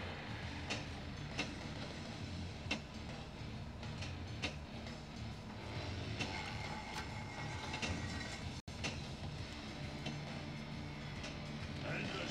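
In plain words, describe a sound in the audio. A pinball clacks against bumpers and flippers.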